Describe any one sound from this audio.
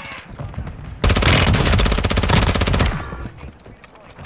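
Automatic gunfire rattles in a rapid burst.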